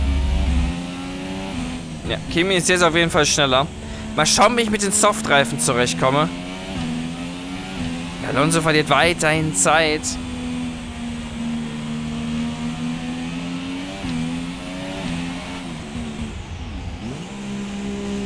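A racing car engine whines loudly, rising and falling in pitch as the car speeds up and slows down.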